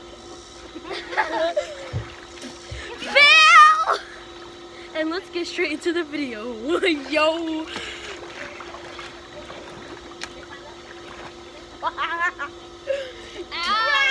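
A young girl talks and laughs close by, outdoors.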